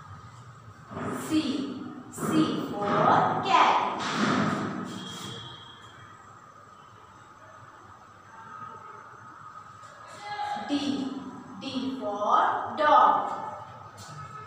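A girl speaks clearly.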